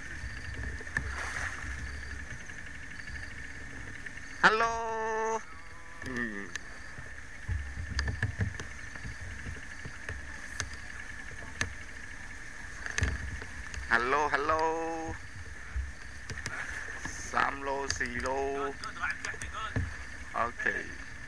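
Elephants wade through river water.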